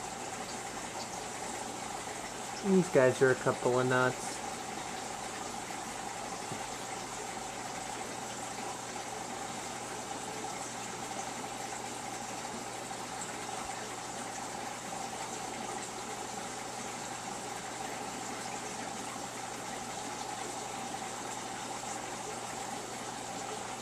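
Water from an aquarium pump bubbles and hums steadily.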